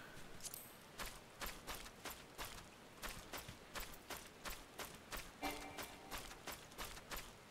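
Footsteps patter quickly and steadily over grass.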